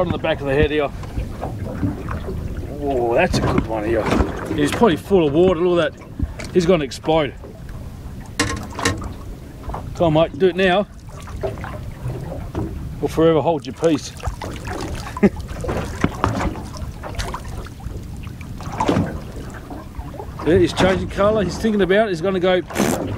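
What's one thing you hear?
Waves lap against a boat's hull.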